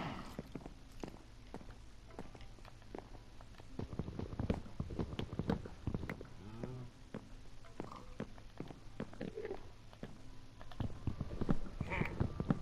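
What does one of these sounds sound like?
Footsteps tap quickly on wooden boards.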